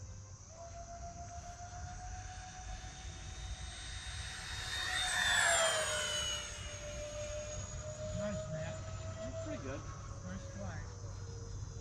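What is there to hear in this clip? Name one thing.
A model airplane's motor whines loudly as it swoops past, its pitch dropping.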